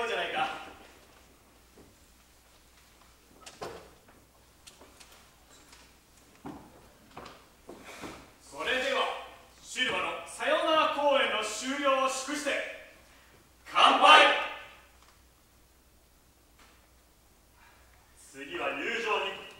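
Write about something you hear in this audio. A man sings loudly through a microphone in a reverberant hall.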